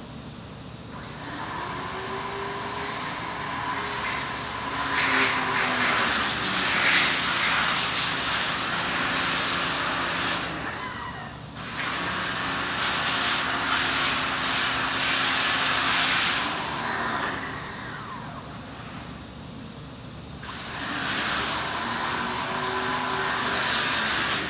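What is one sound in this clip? A pressure washer sprays water hard against metal with a loud hiss.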